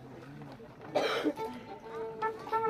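A band of violins and guitars starts to play.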